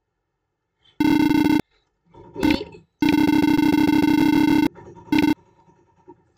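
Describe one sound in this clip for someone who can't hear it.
A steady electronic beeping chirps in short bursts.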